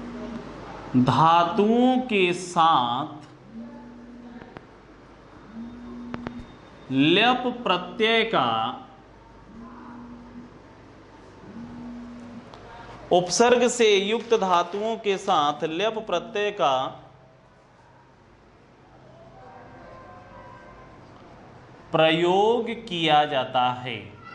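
A man speaks nearby in a steady teaching voice.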